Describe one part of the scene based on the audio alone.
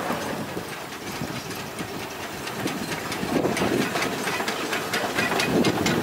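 A narrow-gauge steam locomotive chuffs past.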